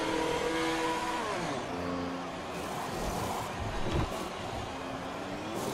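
A Formula One car's engine winds down and idles in the pit lane.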